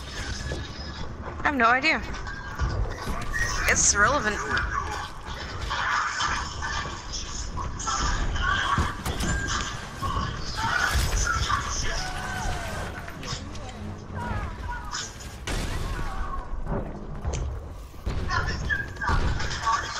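Quick footsteps patter across hard floors.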